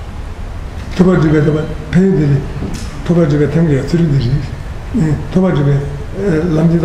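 An elderly man chants aloud in a low, steady voice through a microphone.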